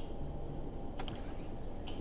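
A button clicks once.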